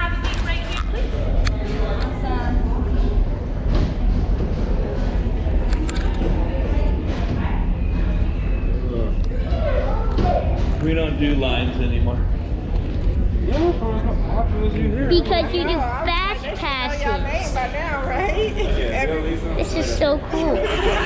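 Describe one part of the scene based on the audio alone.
A crowd of people chatters in a dark, echoing room.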